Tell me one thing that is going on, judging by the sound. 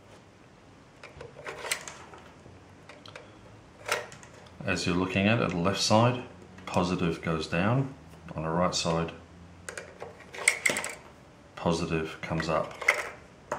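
Batteries click into a battery compartment.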